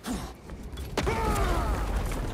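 A heavy body rolls and thumps across the ground.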